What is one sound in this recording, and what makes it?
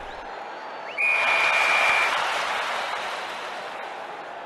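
A crowd cheers loudly, then slowly fades.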